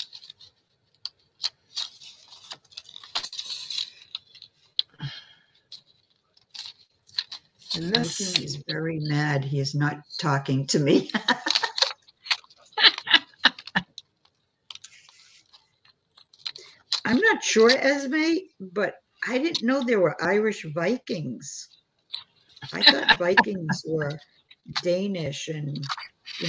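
Paper rustles and crinkles under handling hands.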